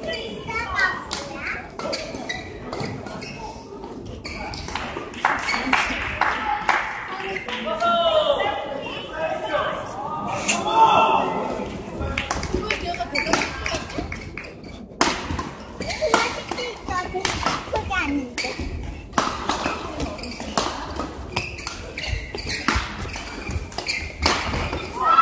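Rackets strike a shuttlecock in quick rallies in a large echoing hall.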